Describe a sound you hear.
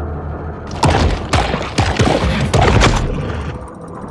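A shark thrashes and bites, with water churning in heavy bursts.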